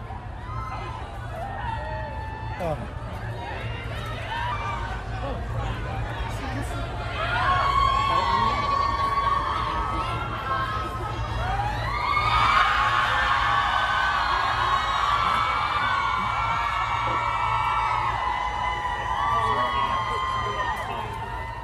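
A crowd of men and women shout and call out loudly nearby.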